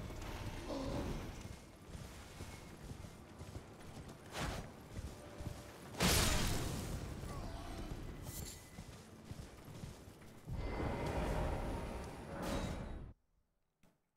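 A horse's hooves thud quickly over the ground.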